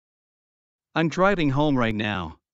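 A man speaks calmly in a short phrase.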